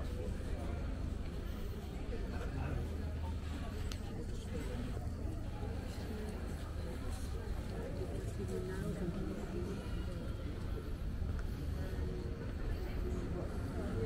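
People chatter faintly in the distance outdoors.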